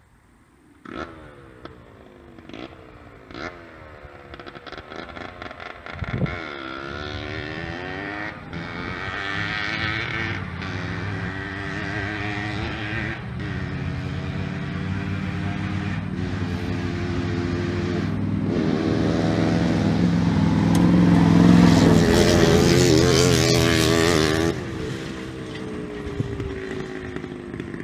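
A truck engine revs repeatedly, then roars louder as it speeds closer and passes.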